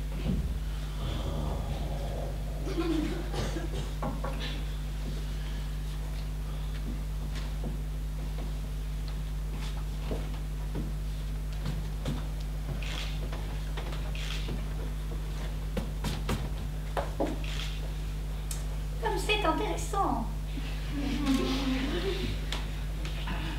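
A woman speaks loudly from a stage in a large hall, heard from a distance.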